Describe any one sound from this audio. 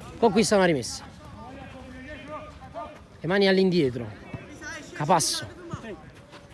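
Young men shout loudly across an outdoor pitch.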